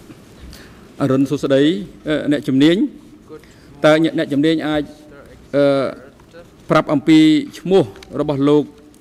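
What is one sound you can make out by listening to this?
An elderly man speaks calmly and clearly close by.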